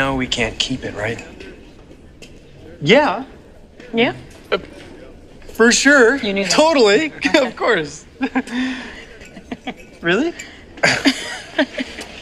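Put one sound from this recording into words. A young woman laughs and talks happily close by.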